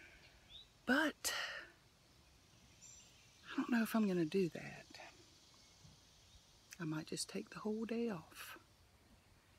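A middle-aged woman talks close by, with pauses between phrases.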